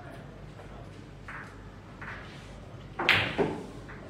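Billiard balls click against each other on a table.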